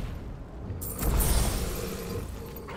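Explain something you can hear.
A sword slashes with a sharp swoosh.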